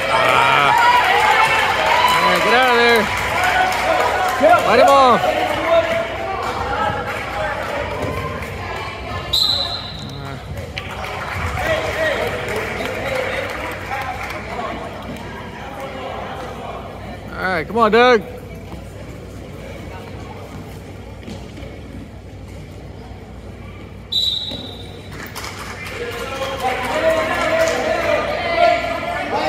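Spectators shout and cheer loudly in an echoing hall.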